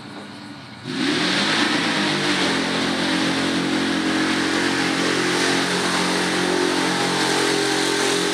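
A pulling truck's engine roars loudly and steadily nearby.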